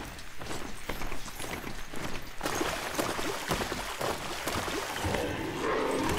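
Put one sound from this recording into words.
Water splashes under a mechanical mount's hooves.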